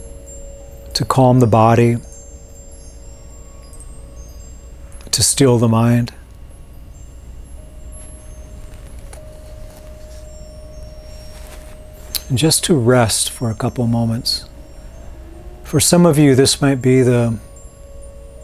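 A man speaks calmly in short, widely spaced phrases, close to a microphone.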